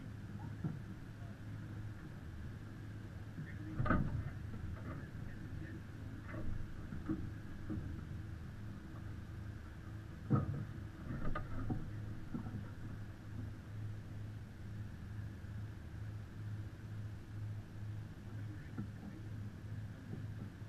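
Water splashes and laps against a moving sailboat's hull.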